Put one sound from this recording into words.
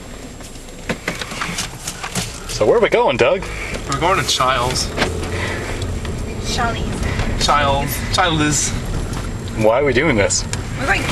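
A man talks close by inside a car.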